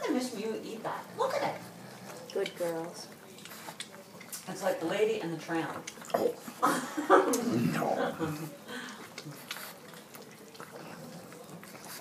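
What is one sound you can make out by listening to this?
A dog chews and crunches on corn kernels close by.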